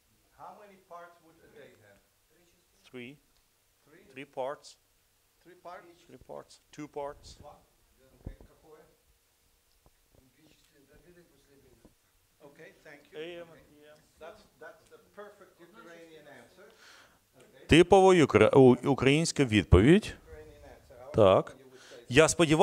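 An elderly man speaks calmly with pauses, close by in a room.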